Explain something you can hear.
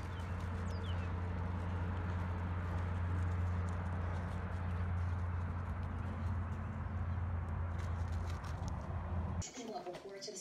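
Wind rumbles across an open field outdoors.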